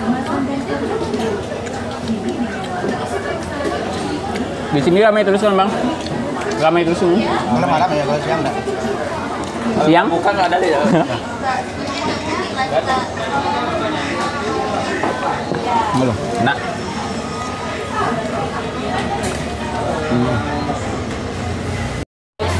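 Fingers squish and scrape through rice on a plate.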